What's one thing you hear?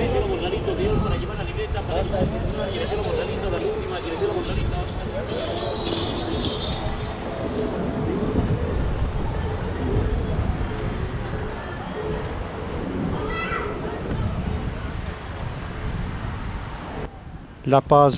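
Street bustle with distant chatter and footsteps fills an open outdoor space.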